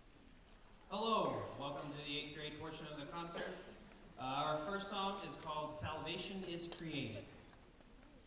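A man speaks calmly through a microphone into a large echoing hall.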